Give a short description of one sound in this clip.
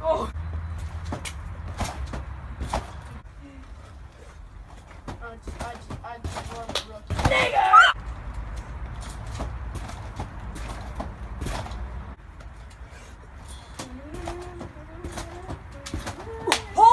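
Feet thump on a trampoline mat again and again.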